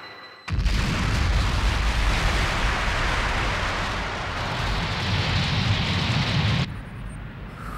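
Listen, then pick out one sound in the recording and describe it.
A chiptune video game explosion roars and rumbles.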